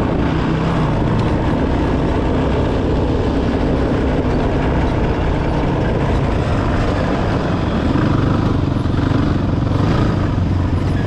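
An off-road vehicle's engine roars steadily up close.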